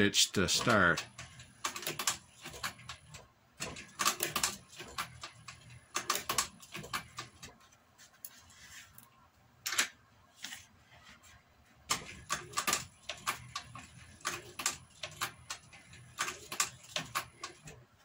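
A sewing machine stitches through thick leather in short bursts.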